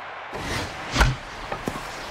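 A bat cracks against a baseball.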